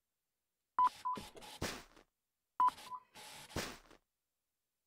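A checkout scanner beeps as items are scanned.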